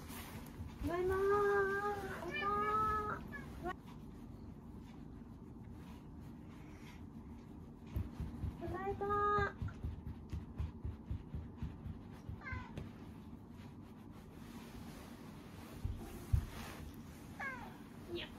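Clothing rustles.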